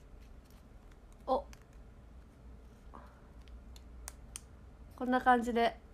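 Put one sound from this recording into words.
A plastic wrapper crinkles in hands.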